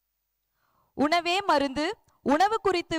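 A woman speaks loudly through a loudspeaker outdoors.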